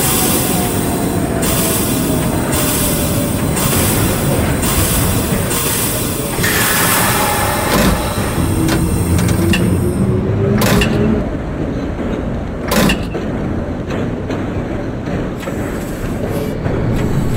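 A train rumbles along the track, its motor whining and slowly falling in pitch as it slows.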